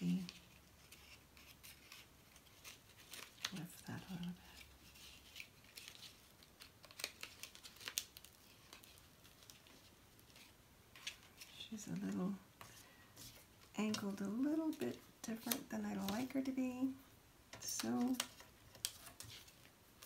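Hands rustle and crinkle paper.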